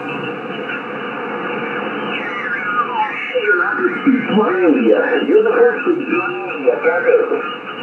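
A radio warbles and whistles as the tuning sweeps across stations.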